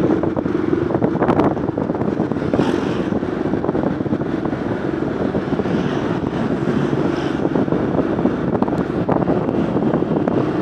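Wind rushes past the microphone while riding.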